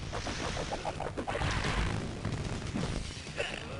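Heavy punches and kicks land with loud thudding smacks.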